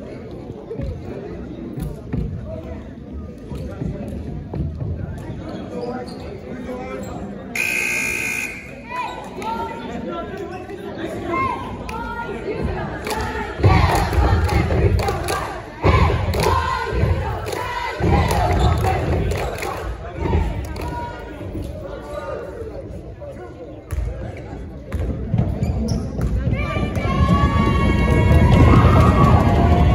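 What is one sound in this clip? Spectators chatter and call out in a large echoing gym.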